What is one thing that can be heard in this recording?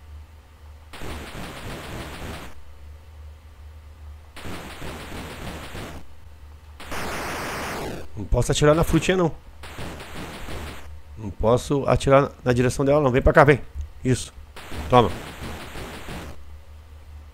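Electronic hissing sound effects from an old video game burst in and stop.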